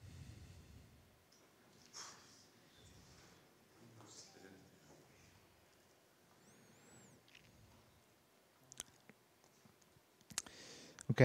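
A man speaks quietly and haltingly into a microphone.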